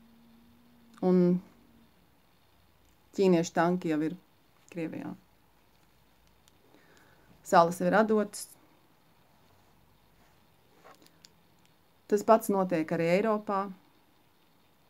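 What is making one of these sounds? A middle-aged woman speaks calmly in short phrases, close to the microphone, with pauses between them.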